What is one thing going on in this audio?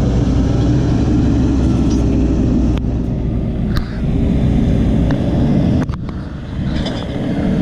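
A backhoe loader's diesel engine rumbles loudly as the loader drives away.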